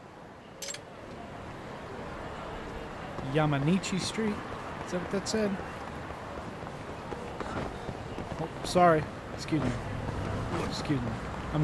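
A busy street hums with traffic and people.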